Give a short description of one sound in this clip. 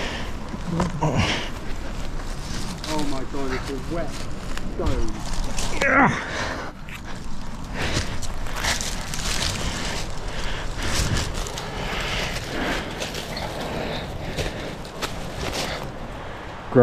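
Dry leaves crunch and rustle underfoot as someone walks.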